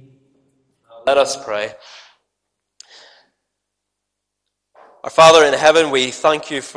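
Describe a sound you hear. A man reads out through a microphone in an echoing hall.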